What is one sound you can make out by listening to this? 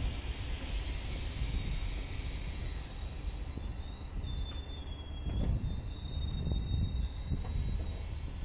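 A passenger train rumbles slowly past, close by.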